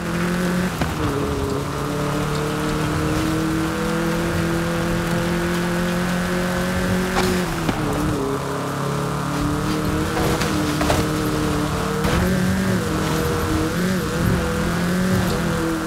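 A car engine roars steadily at high revs, shifting pitch as gears change.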